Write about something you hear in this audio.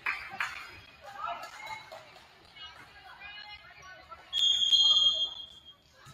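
Players and spectators call out and chatter.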